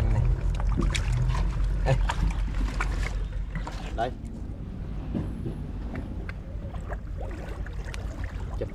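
Water laps and trickles among rocks close by.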